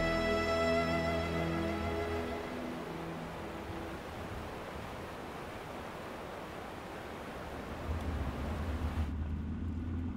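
A fast river rushes and churns.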